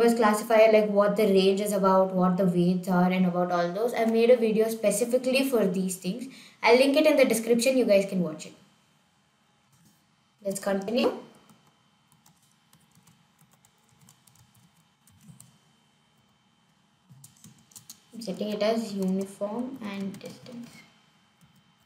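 A young woman speaks calmly and closely into a microphone, pausing between phrases.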